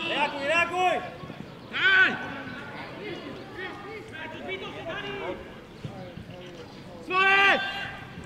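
Men shout to each other loudly across an open pitch.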